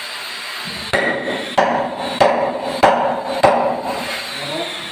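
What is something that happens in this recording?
A hammer strikes metal in several sharp, ringing blows.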